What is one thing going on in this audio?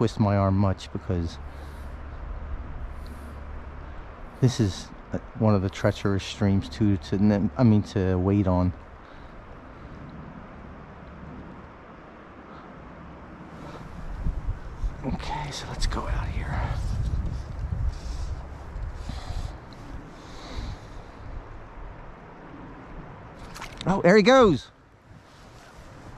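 A shallow river flows and gurgles over stones.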